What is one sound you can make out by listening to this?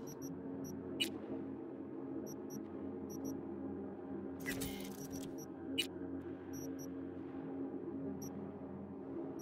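Soft, short clicks tick now and then.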